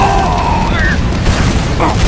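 Flames crackle and roar.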